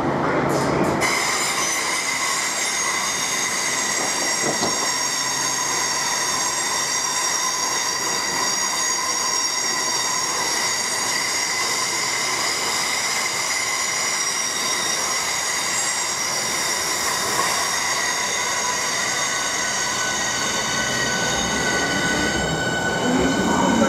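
A passing train whines with a steady high electric hum.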